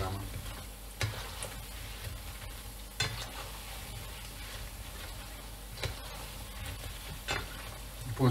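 A metal ladle clinks against a pan.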